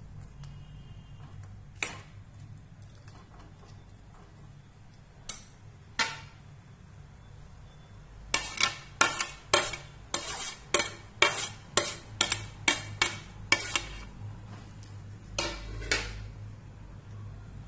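A metal ladle stirs and scrapes thick food in a pan.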